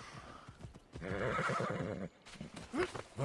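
A horse whinnies close by.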